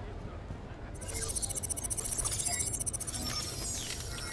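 Electronic beeps and chirps sound from a hacking interface.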